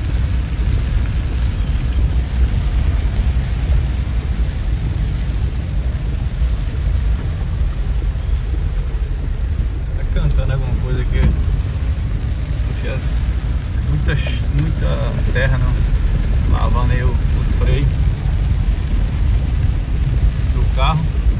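Heavy rain pours down on a vehicle.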